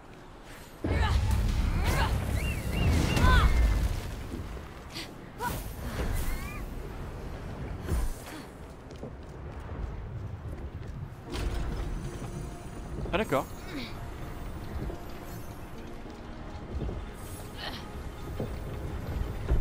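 A magic blast crackles and whooshes.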